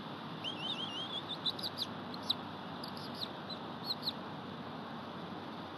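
Twigs rustle and crackle as a large bird shifts on its nest.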